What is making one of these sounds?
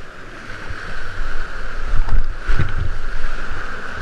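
Water splashes against a kayak.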